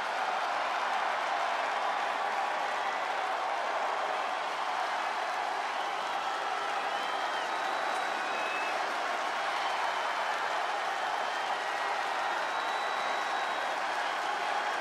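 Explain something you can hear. A large crowd roars steadily in a big arena.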